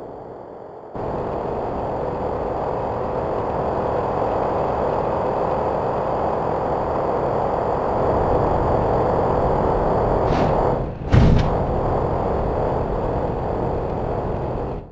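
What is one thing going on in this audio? Tyres rumble over concrete.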